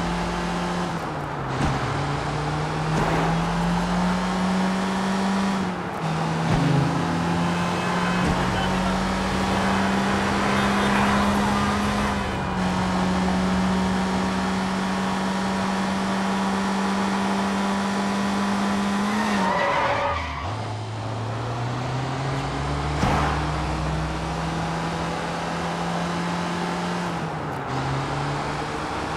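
A van engine hums and revs, shifting up and down through the gears.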